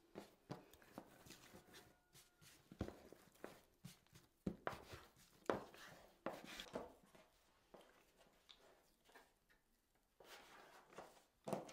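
A plastic scraper taps and scrapes against a wooden board.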